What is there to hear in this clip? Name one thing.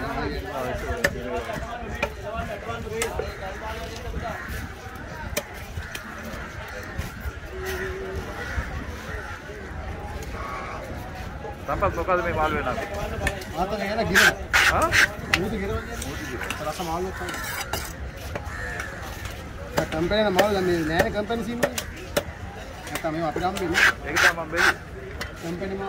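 A knife chops and scrapes on a wooden block.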